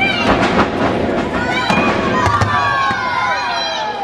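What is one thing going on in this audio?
A wrestler's body slams heavily onto the ring mat.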